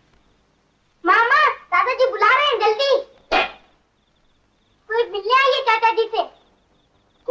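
A young woman speaks with feeling.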